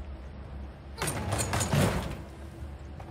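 Footsteps knock on the rungs of a wooden ladder.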